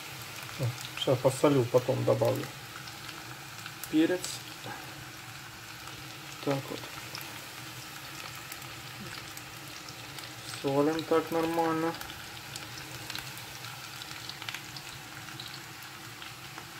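Potato sticks sizzle softly in a frying pan.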